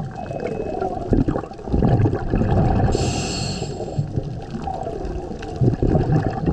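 Water rumbles and surges in low, uneven bursts underwater.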